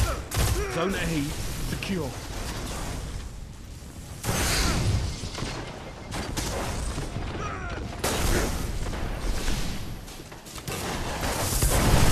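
Video game gunfire rings out in bursts.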